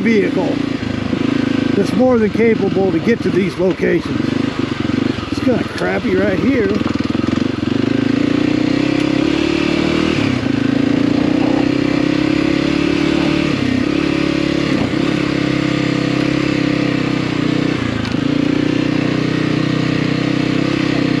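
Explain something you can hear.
A dirt bike engine hums and revs up and down throughout.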